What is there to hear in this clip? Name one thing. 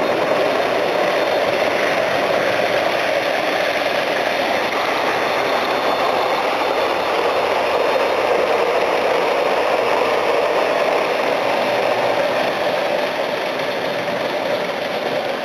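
A model train rumbles and whirs steadily along metal tracks close by.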